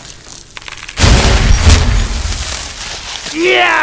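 A magic spell blasts with a loud roaring burst.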